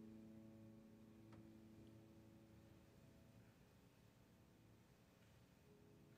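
A piano plays softly, with sustained notes ringing and fading.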